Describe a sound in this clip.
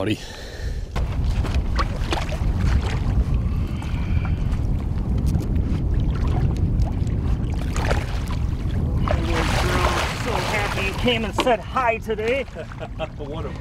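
Wind rumbles steadily outdoors over open water.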